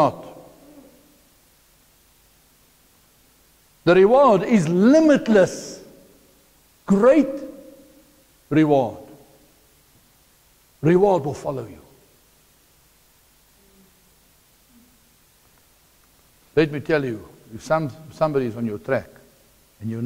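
A middle-aged man speaks through a clip-on microphone in loud, animated bursts with pauses between.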